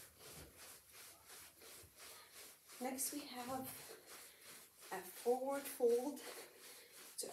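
Feet patter lightly and quickly on a carpeted floor.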